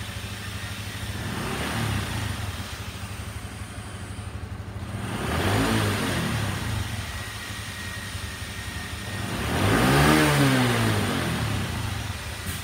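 A small motorcycle engine revs up and falls back several times.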